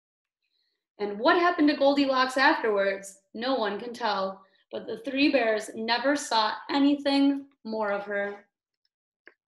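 A young woman reads aloud expressively, close by.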